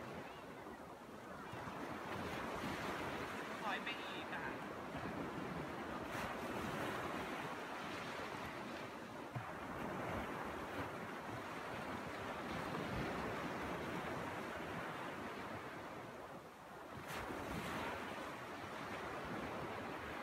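Small waves wash onto a sandy shore in a steady rush.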